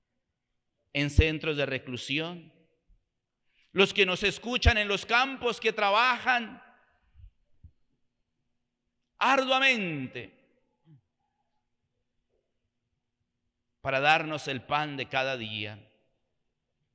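A middle-aged man speaks calmly into a microphone, pausing often between phrases.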